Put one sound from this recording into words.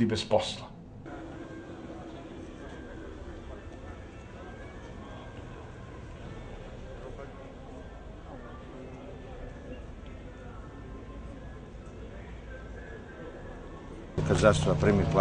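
A crowd murmurs faintly outdoors.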